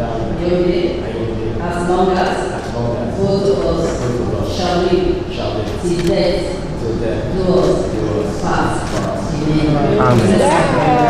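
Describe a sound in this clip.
A young man speaks calmly through a microphone.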